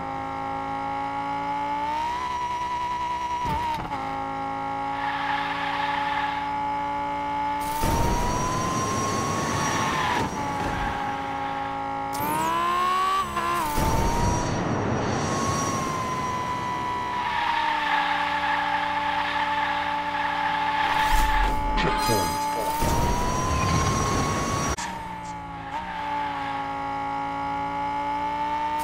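A toy race car's engine whines steadily at high speed, rising and falling in pitch.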